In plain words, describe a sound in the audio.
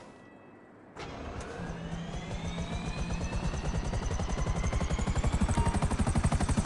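A helicopter engine starts up with a rising whine.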